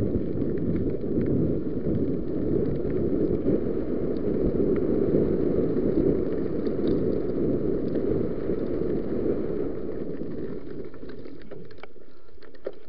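Bicycle tyres crunch over a rough dirt track.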